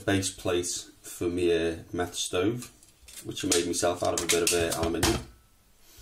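Thin aluminium foil crinkles as it is unfolded and laid down.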